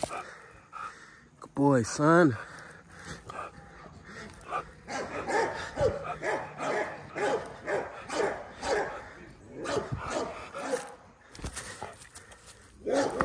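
Dry leaves rustle under a dog's paws.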